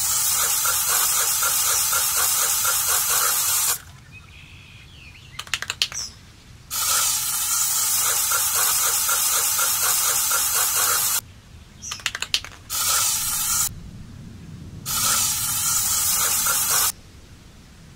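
A spray can hisses in long bursts.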